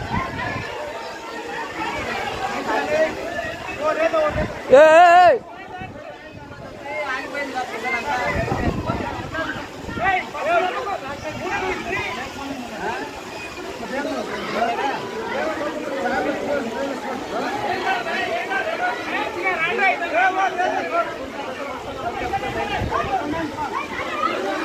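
Men shout and talk excitedly nearby.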